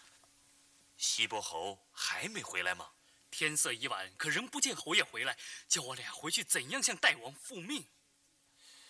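A man speaks forcefully and with animation, close by.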